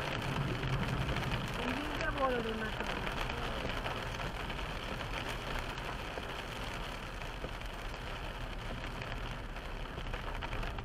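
Rain patters steadily on a car windscreen.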